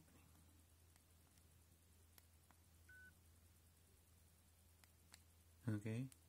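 Small keys click softly as a thumb presses them.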